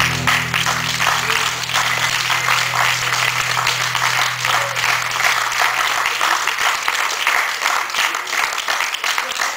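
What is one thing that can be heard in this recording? A guitar is strummed in a large hall.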